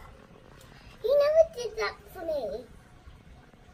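A young girl speaks briefly and excitedly close by.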